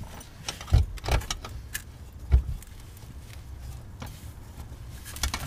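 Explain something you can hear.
Metal parts knock and clank under a car.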